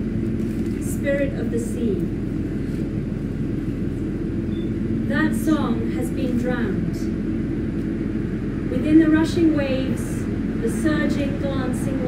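A woman reads aloud calmly and clearly, close by.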